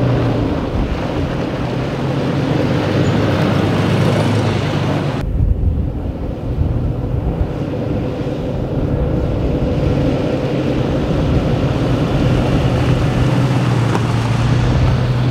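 An SUV approaches and passes, driving over soft sand.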